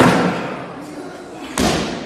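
A heavy barbell crashes down onto the floor.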